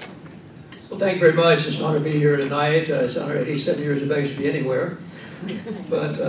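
A man speaks into a microphone over loudspeakers, calmly addressing the room.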